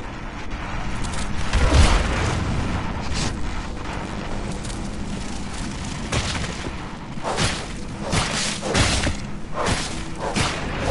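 Lightning crackles and buzzes.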